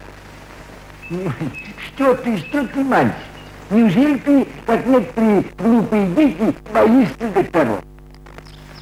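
An elderly man speaks slowly and pleadingly.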